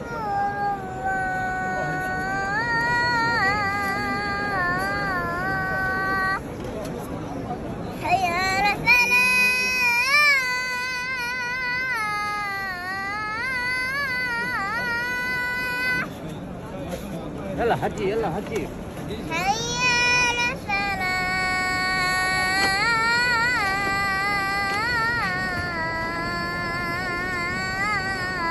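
A large crowd murmurs in the background.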